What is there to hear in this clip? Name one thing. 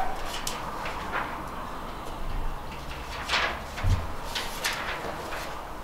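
Paper pages rustle.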